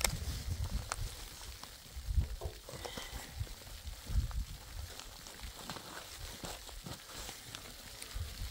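Gloved hands scrape and dig at frozen dirt.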